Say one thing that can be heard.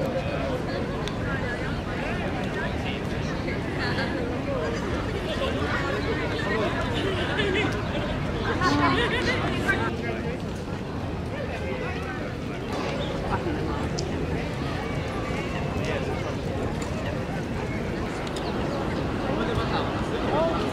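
Many people chatter in the open air.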